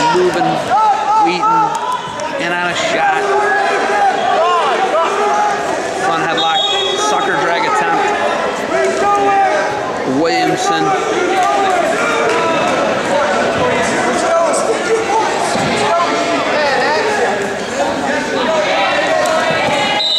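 A crowd of men and women shout encouragement in a large echoing gym.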